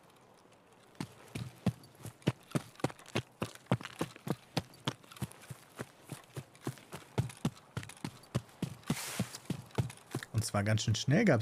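Footsteps crunch through grass and brush at a steady pace.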